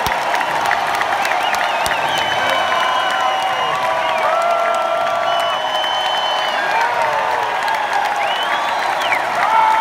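Many people in a crowd clap their hands.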